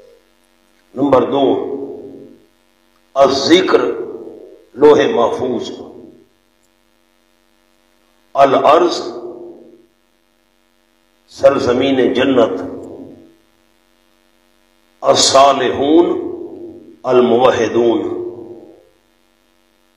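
A man recites in a chanting voice through a microphone, in bursts with pauses between them.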